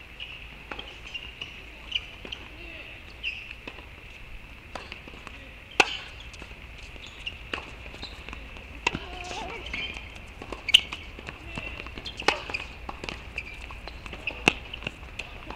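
Tennis rackets strike a ball back and forth with sharp pops.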